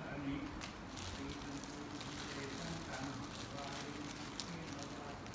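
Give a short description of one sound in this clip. Paper and plastic rustle close by as hands handle small items.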